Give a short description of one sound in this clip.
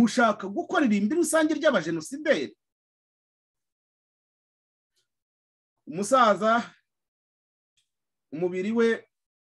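A man speaks calmly and close up, heard through a webcam microphone, in short bursts with pauses.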